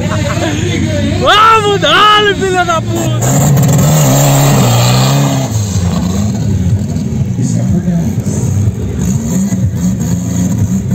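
Tuned car engines idle and rumble loudly nearby.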